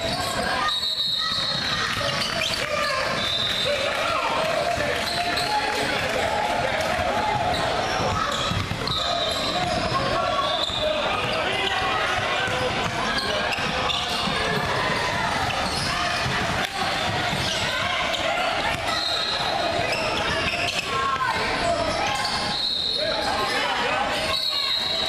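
Young players and spectators shout and call out in a large echoing gym.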